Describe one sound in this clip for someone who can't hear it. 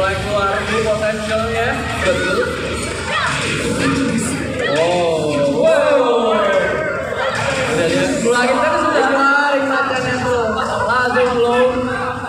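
Video game music plays loudly over loudspeakers in a large echoing hall.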